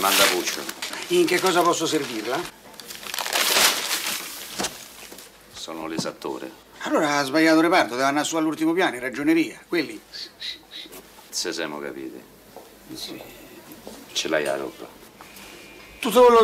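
A man answers in a nervous, animated voice.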